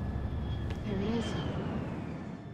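A woman answers quietly.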